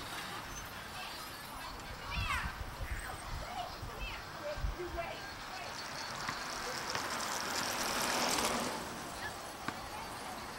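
A car drives slowly past on the street.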